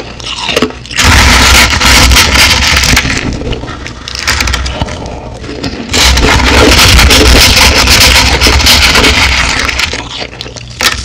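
A hand scrapes and crushes shaved ice loudly, close to a microphone.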